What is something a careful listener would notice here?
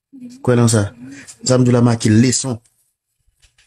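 A young man speaks with animation, close up.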